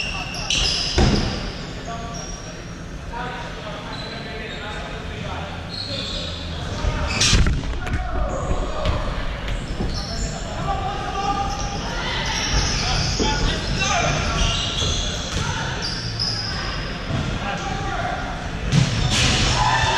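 A ball is kicked hard with a thud.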